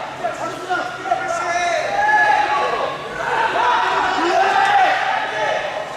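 A man calls out sharply nearby.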